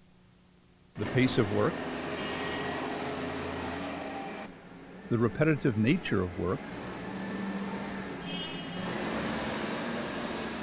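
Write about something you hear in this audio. A forklift engine hums as it drives past.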